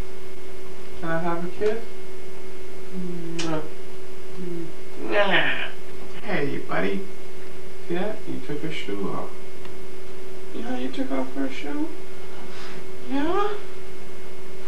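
A man talks playfully in a high, sing-song voice close by.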